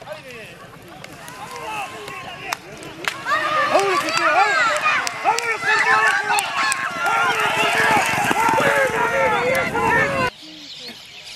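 A crowd of spectators shouts and cheers excitedly outdoors.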